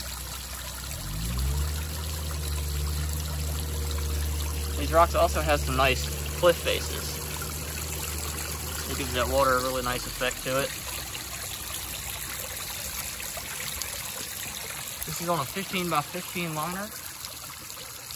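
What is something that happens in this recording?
Water trickles and splashes gently over stones.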